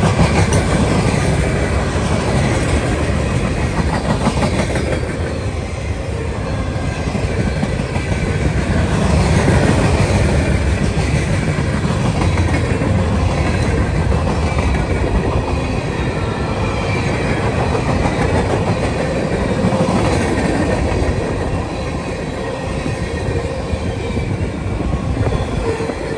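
Wheels squeal faintly against the rails.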